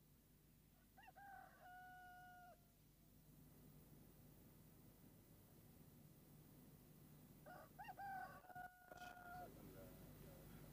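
A man chants a slow, drawn-out prayer nearby.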